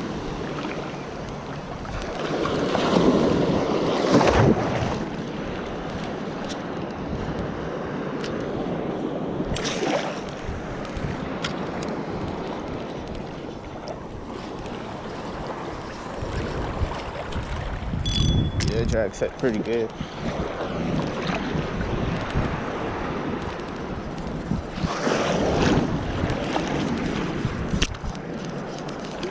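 A fishing reel clicks as its handle is turned.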